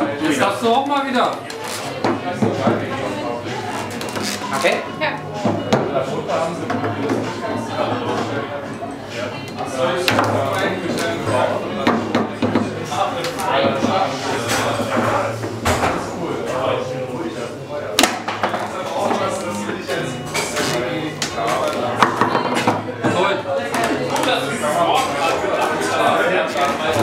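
A ball knocks and clacks against plastic figures and the sides of a table football table.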